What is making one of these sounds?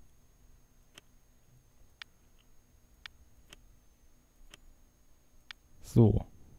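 Short, sharp clicks sound several times as track pieces snap into place.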